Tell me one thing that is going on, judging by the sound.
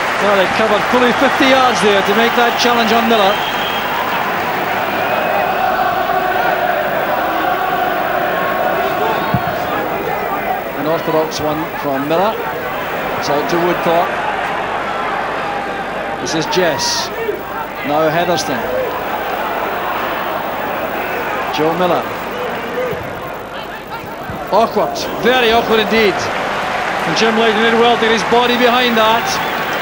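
A large crowd murmurs and cheers in an open stadium.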